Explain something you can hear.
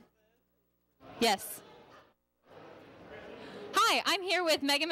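A young woman talks into a microphone, lively and close.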